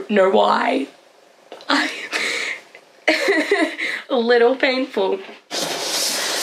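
A young woman speaks cheerfully and close by.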